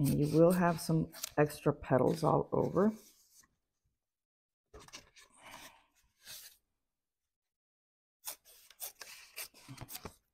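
Scissors snip through soft foam.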